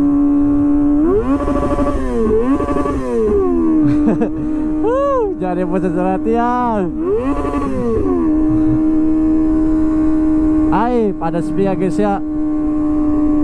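A motorcycle engine revs sharply in quick bursts.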